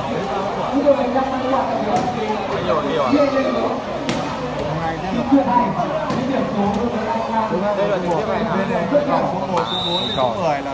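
A large outdoor crowd cheers and chatters loudly.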